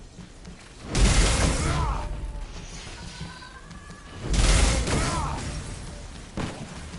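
Heavy impacts boom loudly in a game fight.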